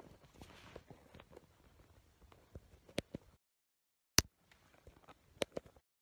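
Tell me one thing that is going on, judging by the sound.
A phone knocks and rustles as it is handled close by.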